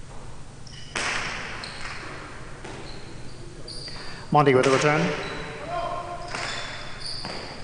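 A hard ball smacks against a wall and echoes through a large hall.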